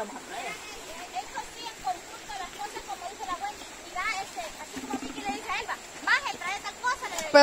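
Women chat casually nearby.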